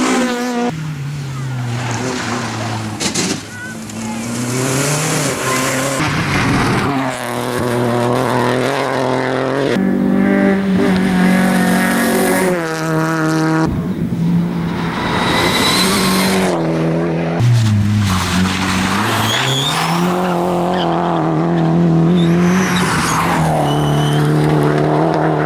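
Rally car engines roar loudly and rev up and down as the cars speed past.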